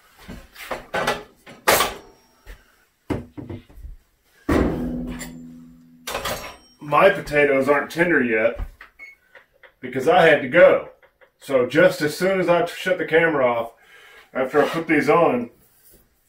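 Pots and utensils clatter on a stove.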